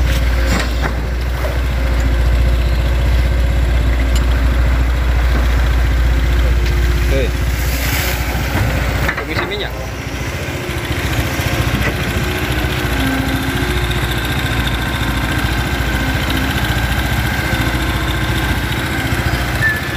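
An excavator engine rumbles steadily close by.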